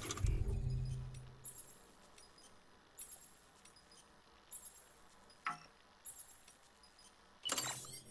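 Soft electronic clicks sound.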